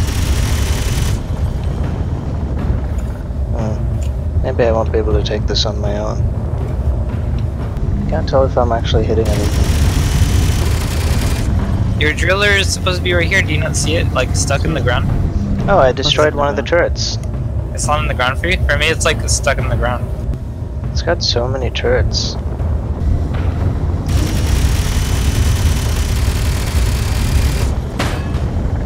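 Spacecraft thrusters roar in bursts.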